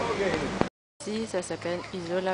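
Beachgoers chatter and call out in the distance.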